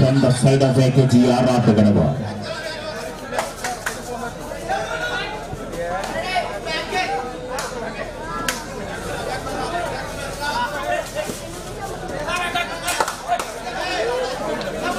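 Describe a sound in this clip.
A large crowd shouts and cheers nearby.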